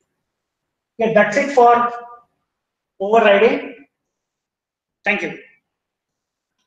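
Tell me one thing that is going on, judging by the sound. A man speaks calmly through a microphone in short phrases.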